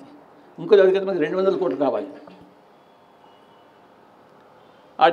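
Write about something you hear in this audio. An elderly man speaks into a microphone in a slow, deliberate voice.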